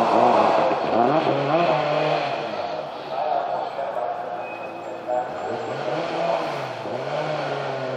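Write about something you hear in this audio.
Tyres squeal on asphalt as a rally car takes a tight bend.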